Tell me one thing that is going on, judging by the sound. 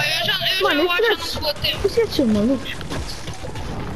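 A pickaxe strikes rock in quick, sharp knocks.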